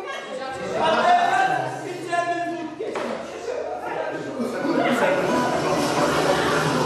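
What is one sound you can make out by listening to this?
Adults chat and talk over one another nearby.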